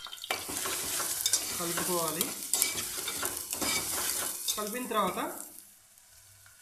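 A metal spoon stirs and clinks against a pot.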